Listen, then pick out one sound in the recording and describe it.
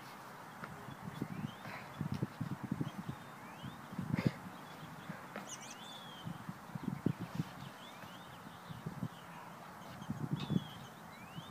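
Shoes scrape and knock on a wooden deck railing as a young man climbs.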